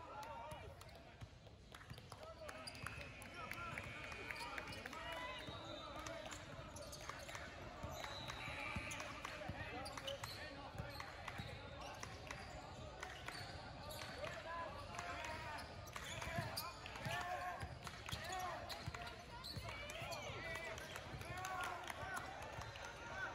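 A basketball bounces on a hardwood floor, echoing in a large hall.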